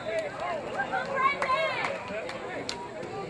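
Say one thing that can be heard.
Young boys shout.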